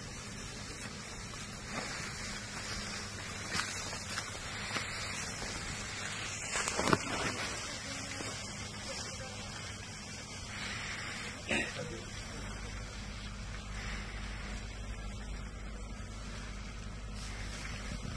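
Tall crops rustle and swish as several people push through them on foot.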